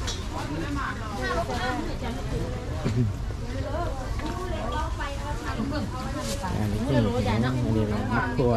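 Men and women chatter nearby in a busy crowd.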